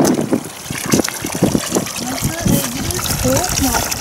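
Water pours from a pipe into a trough.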